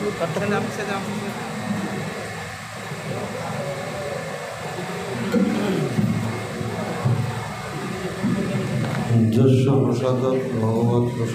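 A middle-aged man speaks calmly into a microphone, heard through a loudspeaker.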